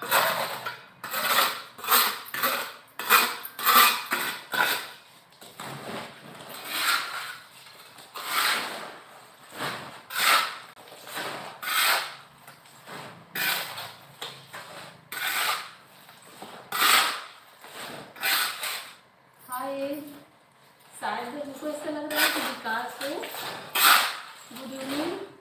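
A woman scrubs a surface with rough, repeated strokes.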